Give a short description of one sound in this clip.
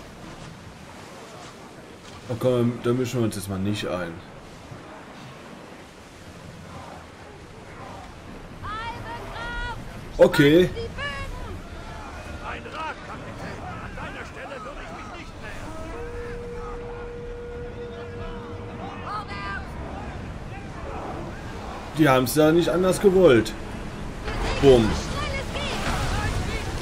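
Waves wash and splash against a wooden ship's hull.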